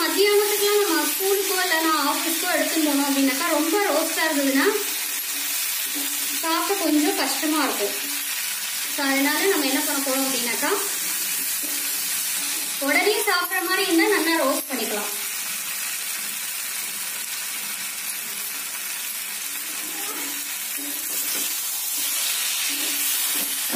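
Food sizzles in a hot frying pan.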